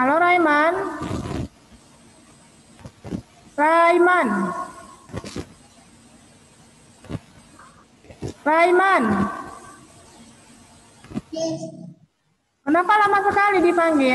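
A young girl speaks in bursts over an online call, her voice rising and falling like reading aloud.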